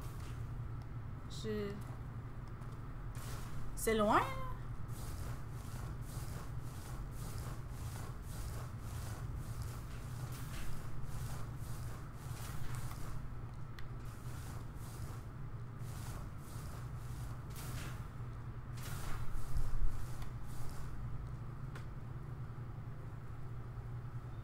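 A young woman speaks quietly into a microphone.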